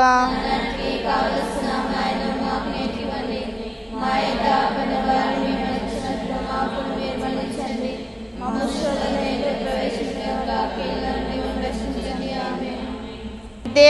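A group of women pray aloud together, heard through a microphone.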